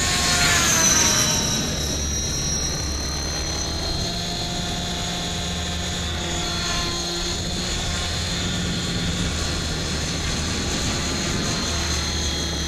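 Rotor blades whir with a steady thumping beat.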